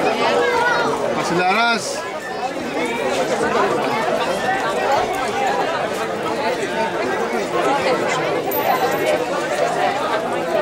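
Football players shout to each other outdoors.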